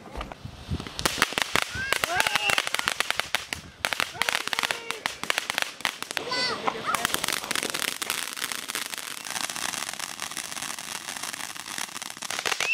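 Fireworks fountains hiss and crackle loudly outdoors.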